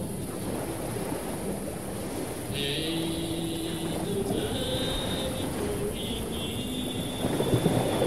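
Fiddles play a lively folk tune.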